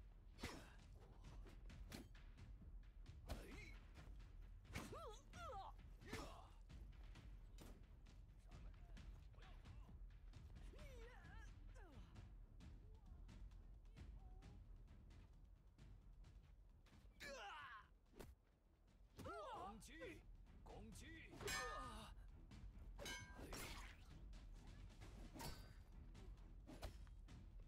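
Blades clash and strike repeatedly in a fight.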